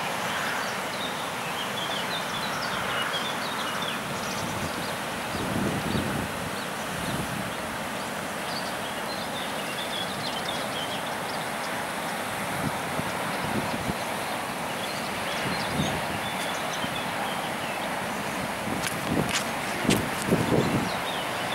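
Wind rustles through grass and reeds.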